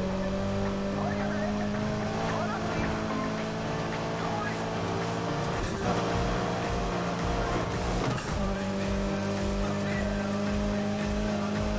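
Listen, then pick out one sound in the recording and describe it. A car engine roars at high speed, holding a steady pitch with brief dips as it shifts gear.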